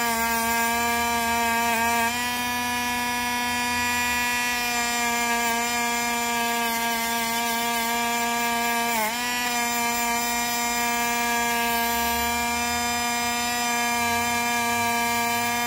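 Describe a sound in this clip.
A small rotary tool whines steadily at a high pitch.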